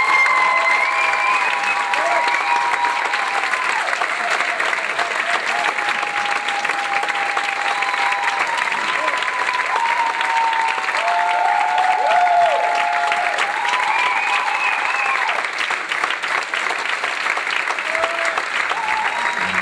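An audience cheers and whistles.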